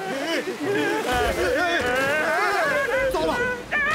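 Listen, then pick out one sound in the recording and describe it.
Rushing water roars.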